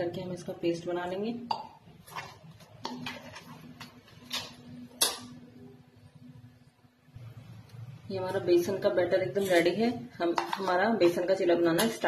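A metal spoon scrapes and clinks against a metal bowl while stirring.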